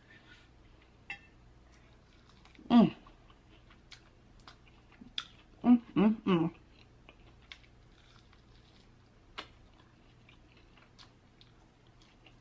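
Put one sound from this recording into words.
Crispy fried chicken crunches as a woman bites and chews.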